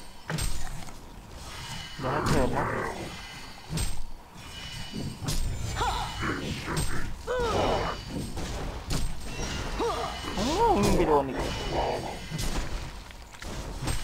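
Magic blasts and weapon clashes crackle in a busy fantasy battle.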